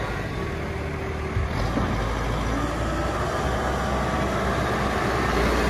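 A diesel engine of a backhoe loader rumbles steadily.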